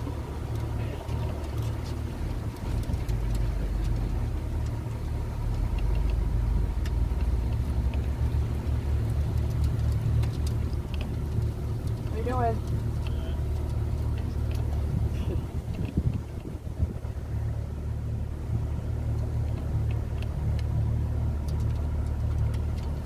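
Water splashes gently against a boat's hull.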